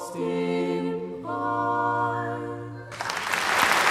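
Folk musicians play a tune in a large hall.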